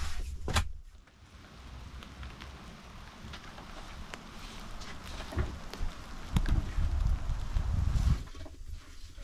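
Wind rustles through forest trees.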